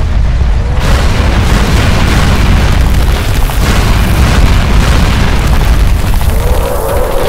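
Flames roar and crackle in a burst of fire.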